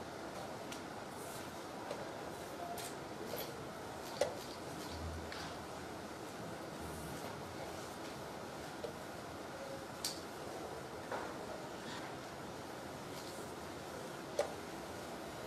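Wooden chess pieces knock on a wooden board.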